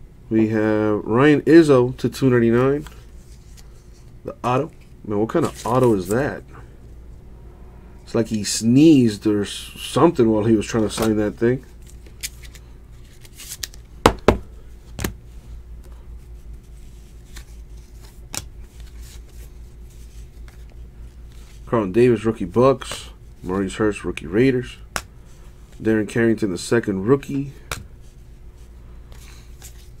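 Cards rustle and click softly as hands shuffle through them.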